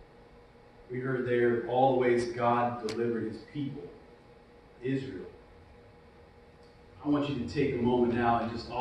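A man speaks through a microphone in a large echoing room.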